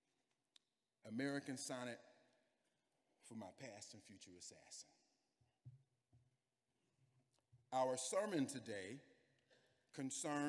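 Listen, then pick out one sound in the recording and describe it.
A young man sings in short, close phrases.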